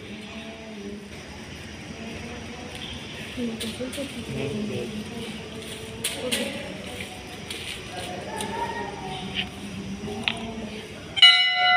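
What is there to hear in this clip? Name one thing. A crowd of people murmurs and chatters close by.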